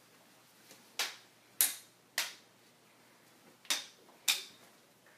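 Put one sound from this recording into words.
Toy swords clack together in a playful sword fight.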